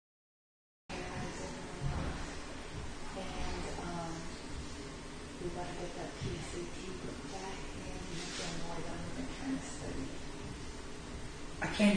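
A woman talks quietly at a distance.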